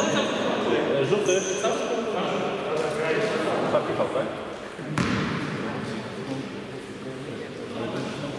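Sneakers squeak and thud on a wooden court.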